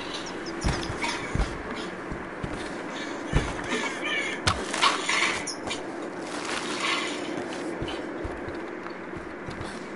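Boots thud on wooden planks.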